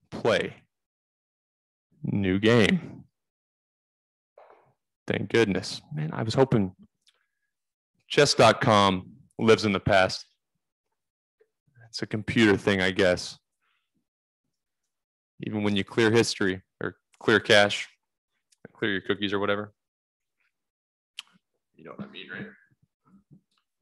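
A young man talks casually and close to a microphone, in short bursts with pauses.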